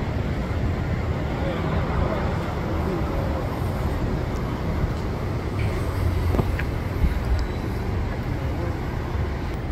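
An electric bus hums quietly as it pulls away and drives past.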